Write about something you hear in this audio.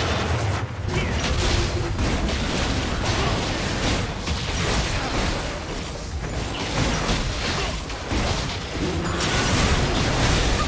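A large monster roars and thuds as it is attacked.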